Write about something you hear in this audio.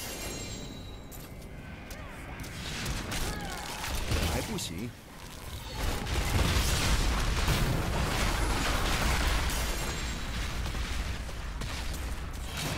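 Spells in a video game crackle and boom.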